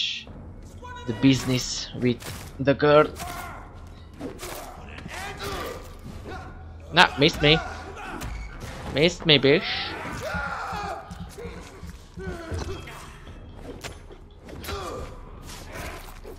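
Blows land with heavy thuds in a fight.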